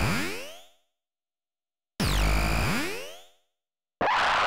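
A magical warp effect sweeps up and down in pitch with a shimmering ring.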